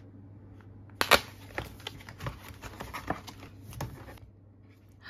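A paper bag crinkles and rustles.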